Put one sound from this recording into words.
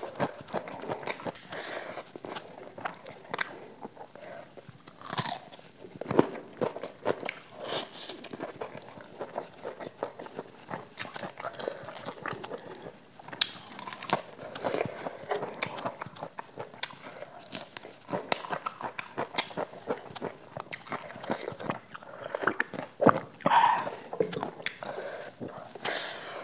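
Fingers rustle and tear food on a plate.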